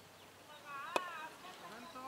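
A cricket bat cracks sharply against a ball outdoors.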